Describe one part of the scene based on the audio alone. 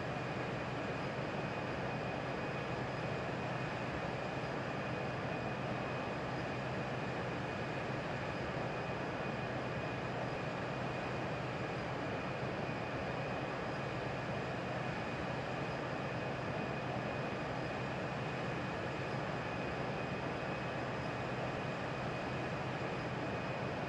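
Jet engines drone steadily with a low hum.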